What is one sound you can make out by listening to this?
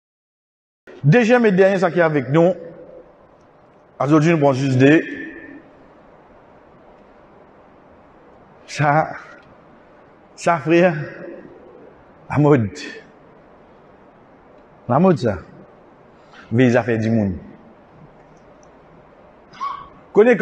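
A man speaks calmly into a microphone in short phrases, with pauses between them.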